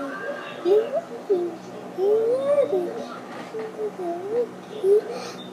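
A young boy sings in a high, playful voice close by.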